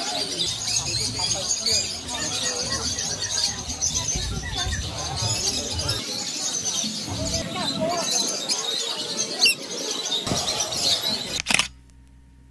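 Small parrots chirp and twitter nearby.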